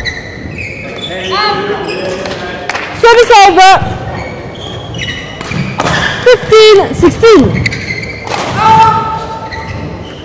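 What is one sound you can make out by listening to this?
Shoes squeak sharply on a court floor in a large echoing hall.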